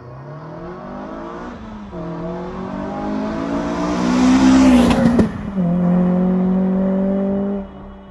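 A car engine revs hard, shifting gears as the car speeds close by and pulls away.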